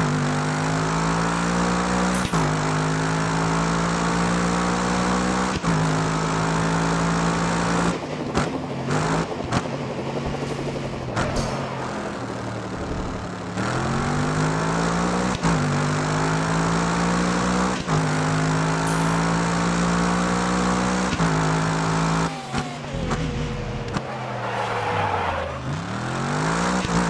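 A racing car engine roars at high revs, dropping briefly with each gear change.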